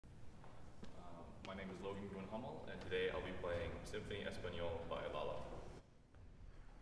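A young man speaks calmly to an audience in a large echoing hall.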